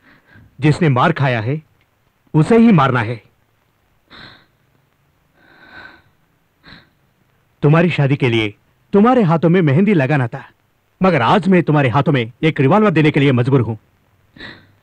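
A man speaks close by in an urgent, pleading voice.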